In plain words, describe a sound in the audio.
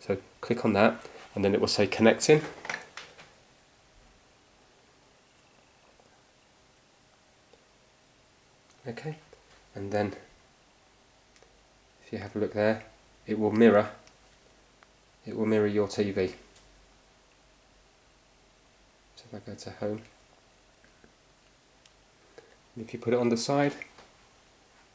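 A man speaks calmly in short phrases close by.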